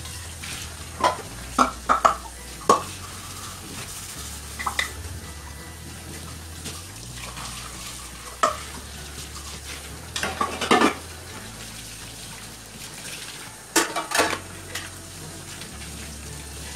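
Water runs steadily from a tap into a sink.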